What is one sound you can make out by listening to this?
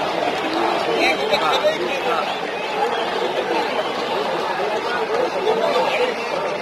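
A large stadium crowd chants and sings loudly outdoors.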